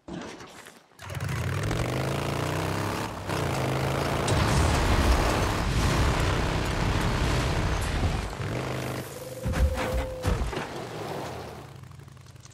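Tyres crunch over dirt and gravel.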